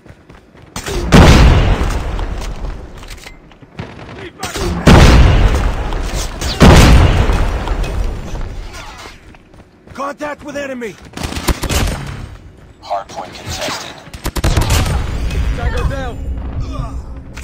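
Automatic rifle gunfire bursts out in a video game.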